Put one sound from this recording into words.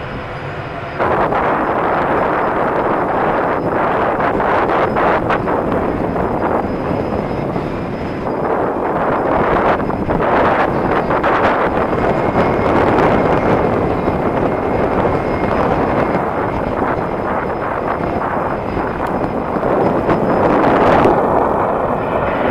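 Jet engines rumble as an airliner touches down and rolls along a runway.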